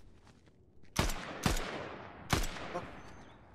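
Rifle shots ring out sharply.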